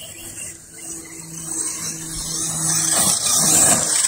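A small motor whines steadily as a toy car drives.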